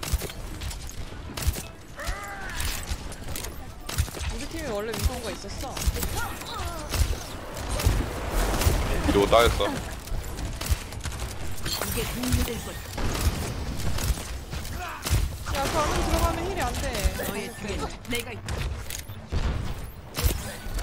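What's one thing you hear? Rifle shots crack sharply, again and again.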